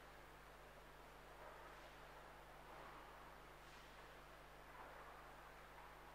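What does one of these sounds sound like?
Footsteps echo softly in a large hall.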